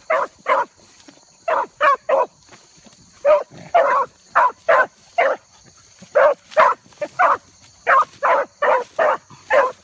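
A wild animal calls out in loud, short, repeated bursts close by.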